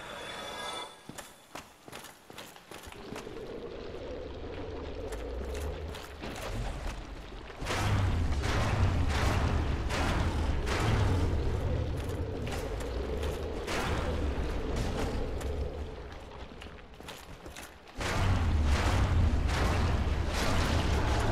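Armored footsteps clank on stone.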